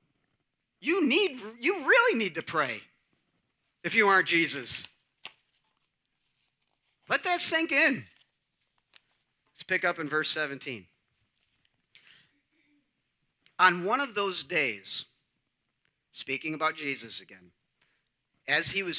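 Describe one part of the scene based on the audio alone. A middle-aged man speaks calmly in phrases through a microphone in an echoing hall.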